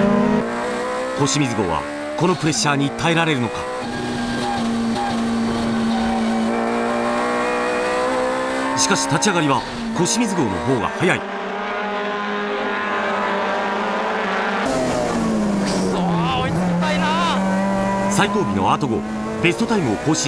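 Tyres squeal on tarmac in short bursts.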